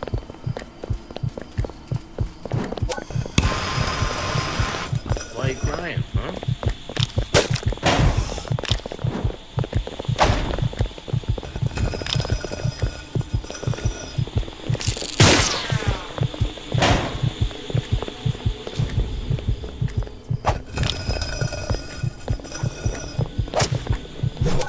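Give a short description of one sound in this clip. Footsteps thud quickly and steadily on a hard floor.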